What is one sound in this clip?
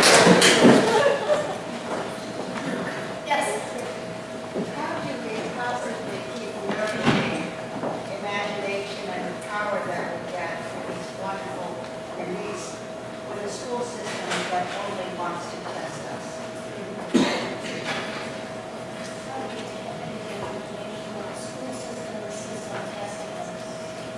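A woman speaks calmly through a microphone in a large echoing hall.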